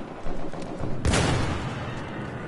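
A gunshot cracks sharply and echoes.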